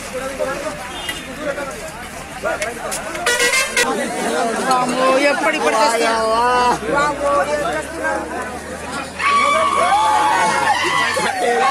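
A crowd of men talks loudly nearby.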